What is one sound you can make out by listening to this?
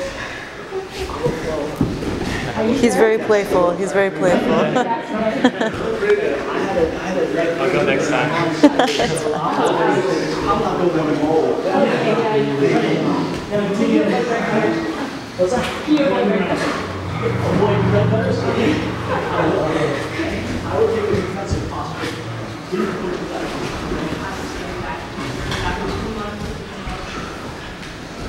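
A man talks calmly and explains, close by, in a room with some echo.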